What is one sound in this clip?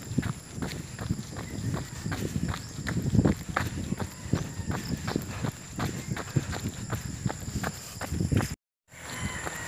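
Footsteps slap steadily on pavement.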